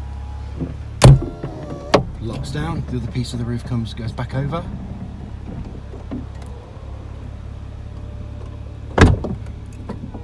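A roof latch clunks sharply a couple of times.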